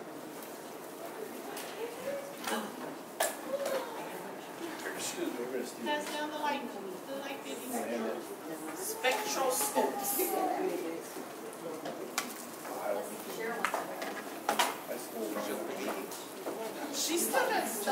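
A young man reads aloud in a room with some echo.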